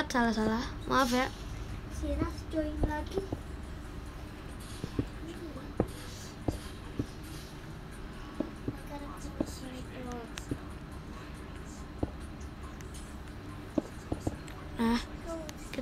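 Game blocks are placed with short, soft knocks.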